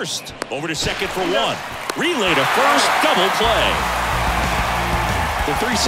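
A stadium crowd cheers loudly.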